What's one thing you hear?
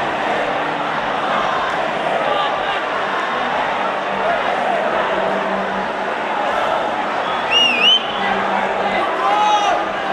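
A large stadium crowd chants and sings loudly, outdoors.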